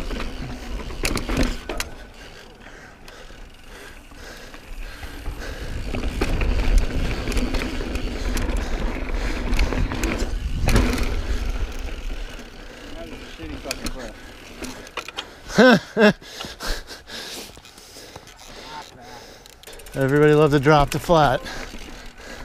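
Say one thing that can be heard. A bicycle frame rattles over bumps.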